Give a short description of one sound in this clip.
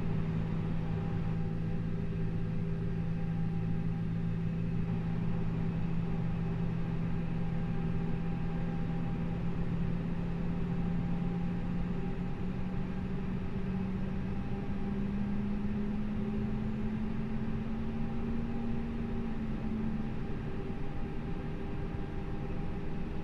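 Jet engines hum steadily and slowly rise in pitch.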